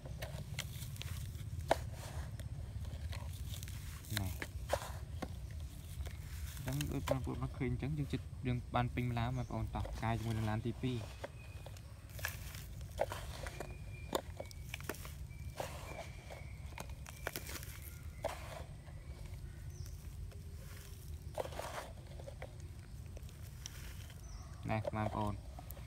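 Sand pours and patters onto sand and plastic.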